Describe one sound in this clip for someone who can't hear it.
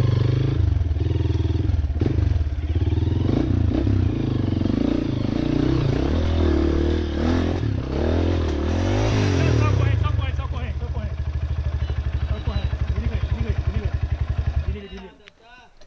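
A dirt bike engine revs and sputters loudly close by.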